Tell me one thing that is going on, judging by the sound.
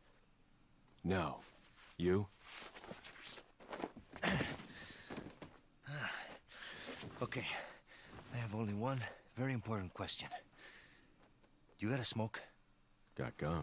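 A younger man answers in a low, flat voice, close by.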